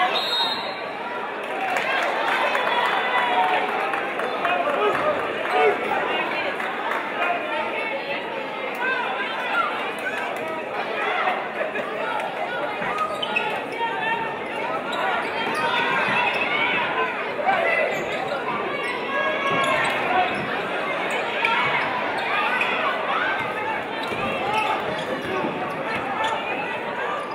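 A crowd chatters and murmurs in a large echoing gym.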